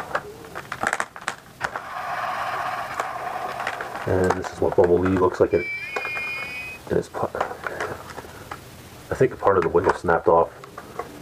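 Plastic toy parts click and snap as they are handled.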